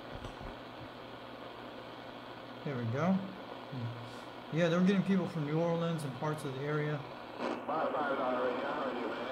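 A shortwave radio hisses with steady static.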